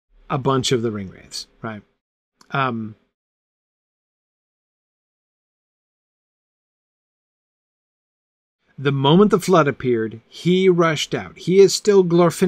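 A middle-aged man reads aloud calmly and close to a microphone, with a long pause.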